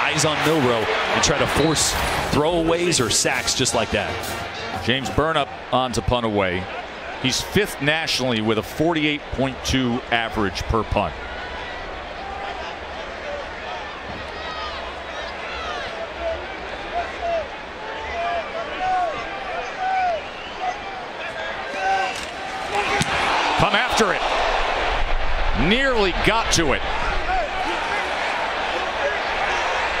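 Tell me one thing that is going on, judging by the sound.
A large stadium crowd cheers and roars, swelling louder near the end.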